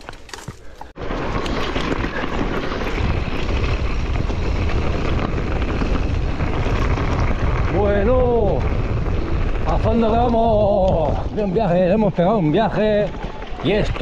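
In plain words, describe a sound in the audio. Wind rushes loudly past a fast-moving rider.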